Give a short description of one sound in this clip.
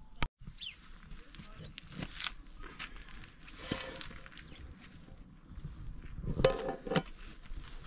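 A woman lifts a metal lid off a pot with a clatter.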